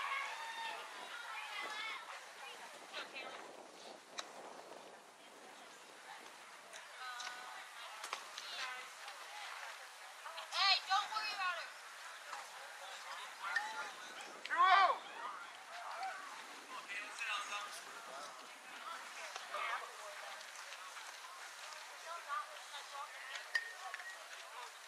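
Young girls shout and cheer nearby outdoors.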